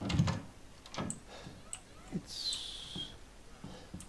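A wooden door opens.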